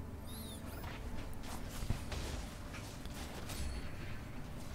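Game spells crackle and burst during a fight.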